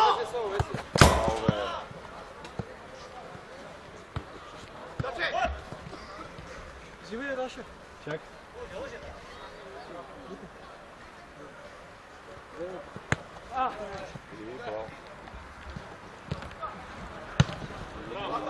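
A football is kicked with a sharp thud.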